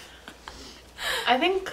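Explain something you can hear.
Young women laugh loudly close by.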